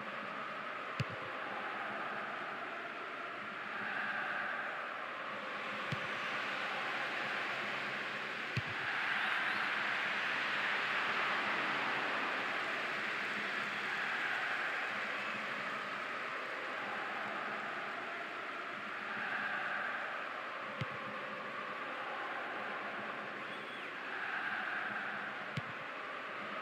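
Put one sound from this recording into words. A football is kicked with sharp thuds now and then.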